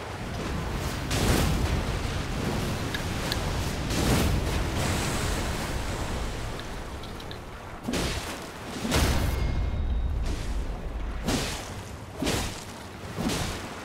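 Blades clash with heavy impacts.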